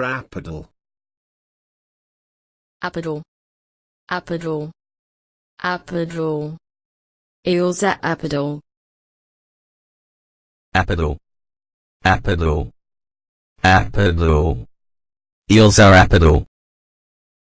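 A man reads out a single word clearly through a microphone, again and again.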